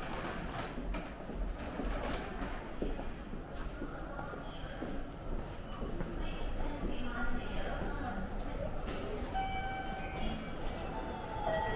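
Footsteps of passers-by patter on a hard floor in a large, echoing space.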